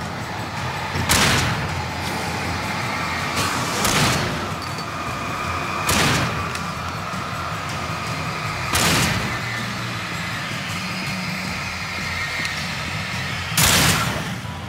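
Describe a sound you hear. Loud gunshots boom one at a time, a few seconds apart.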